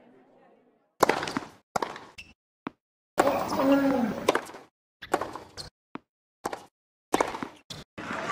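Rackets strike a tennis ball back and forth.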